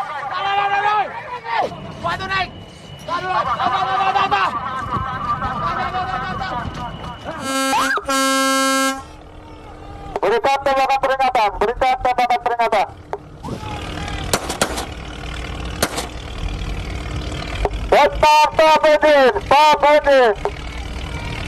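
Men shout on a boat at sea.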